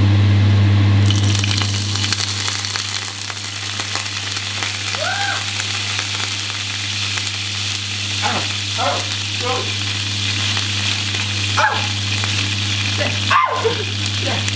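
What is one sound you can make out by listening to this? Liquid hits a hot pan and sizzles loudly.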